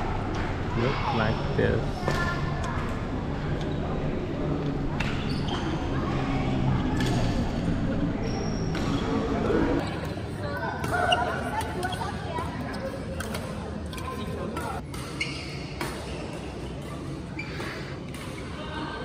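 Voices of many players chatter and call out around a large echoing hall.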